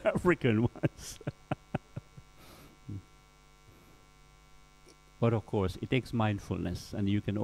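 A middle-aged man speaks with animation close to a microphone.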